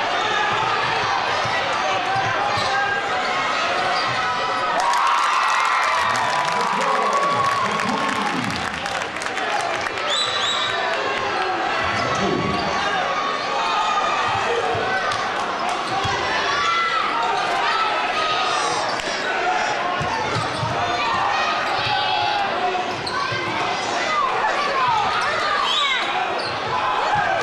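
Sneakers squeak sharply on a wooden court.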